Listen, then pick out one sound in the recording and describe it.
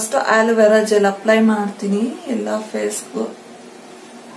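A young woman speaks calmly close to the microphone.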